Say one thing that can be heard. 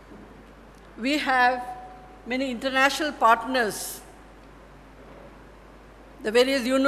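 A middle-aged woman speaks calmly into a microphone, heard through a loudspeaker in a large room.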